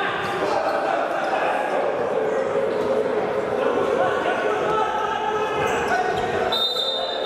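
A crowd of spectators chants and shouts in a large echoing hall.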